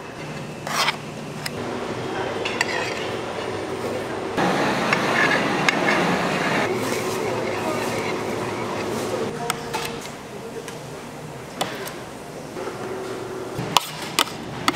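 A metal spatula scrapes and taps against a metal bowl.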